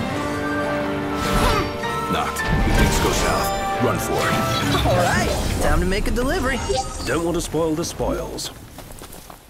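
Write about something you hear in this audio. Loud, dramatic music plays.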